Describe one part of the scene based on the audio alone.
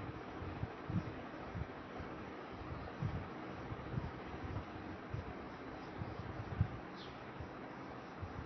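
A fingertip rubs softly across paper.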